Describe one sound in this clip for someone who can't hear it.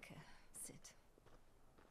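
A woman speaks softly and briefly.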